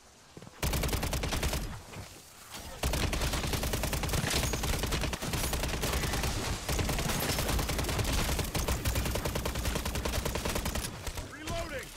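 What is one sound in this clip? An automatic gun fires rapid bursts close by.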